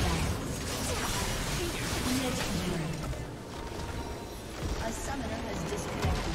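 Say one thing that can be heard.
Game spell effects crash and burst in a fight.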